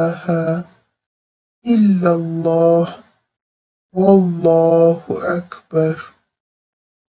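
A man recites in a low, calm voice.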